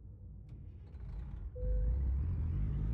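A truck engine starts up with a deep rumble.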